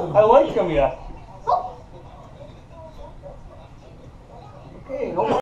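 Several men and women chat quietly in a room.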